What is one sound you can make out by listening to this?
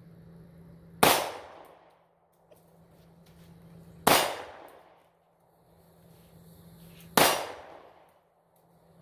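A pistol fires loud single shots that echo through the woods.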